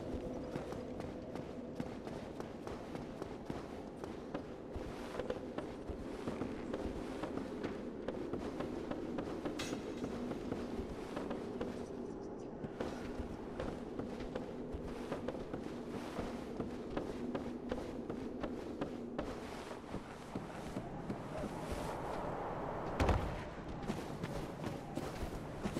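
Heavy footsteps clatter quickly across a hard floor.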